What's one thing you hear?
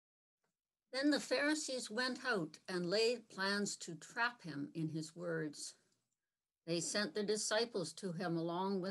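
An elderly woman speaks calmly and clearly into a nearby microphone, heard as over an online call.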